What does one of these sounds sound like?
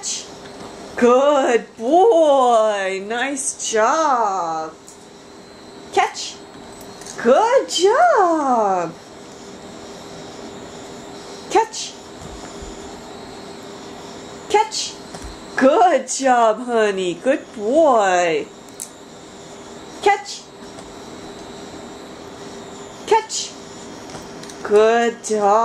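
A small dog yips and howls in high, wavering bursts close by.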